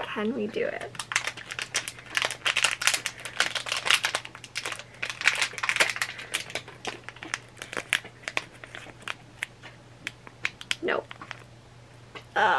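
Packaging crinkles and clicks as hands open it.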